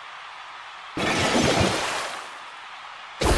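A watery whoosh splashes briefly.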